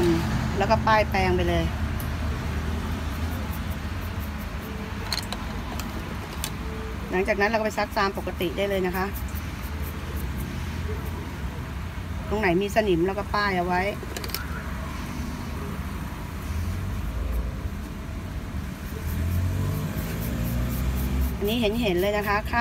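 A toothbrush scrubs cloth.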